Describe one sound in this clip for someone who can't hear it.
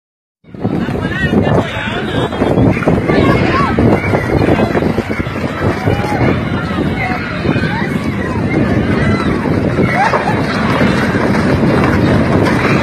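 A crowd of young men and women shouts excitedly nearby.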